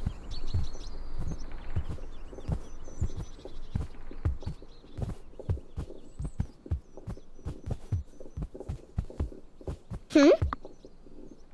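Light footsteps patter quickly and steadily.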